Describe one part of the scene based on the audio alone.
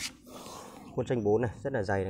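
A hand rubs lightly over smooth wood.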